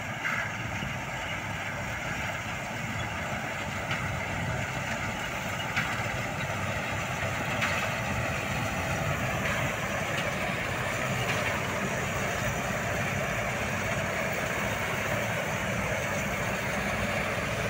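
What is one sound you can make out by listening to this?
A combine harvester's engine rumbles steadily and grows louder as it approaches.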